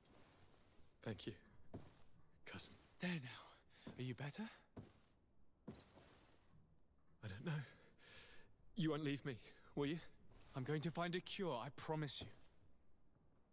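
A young woman speaks quietly and sadly, close by.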